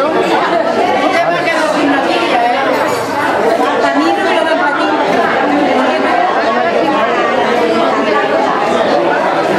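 A crowd of elderly people chatters all around, close by, indoors.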